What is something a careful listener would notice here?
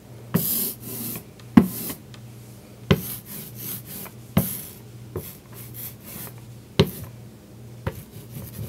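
A roller knocks down onto a hard surface.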